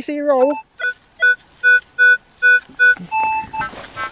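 A metal detector beeps in short repeated tones.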